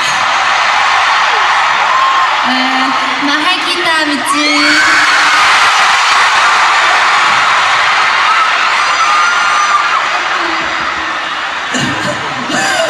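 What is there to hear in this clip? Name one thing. A large crowd screams and cheers in a big echoing hall.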